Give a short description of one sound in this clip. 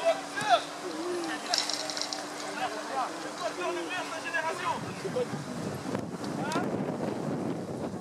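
Youth football players shout to each other across an outdoor pitch.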